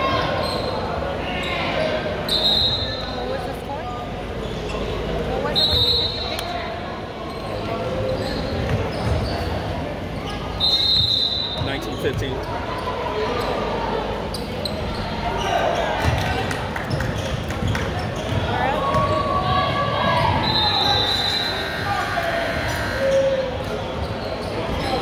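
Girls and spectators chatter and call out in a large echoing gym.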